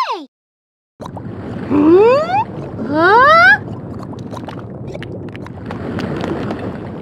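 Lava bubbles and rumbles steadily.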